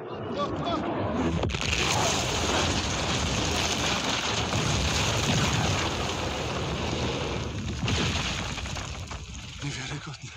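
A loud, deep roaring rumble of an explosion fills the air, then fades away.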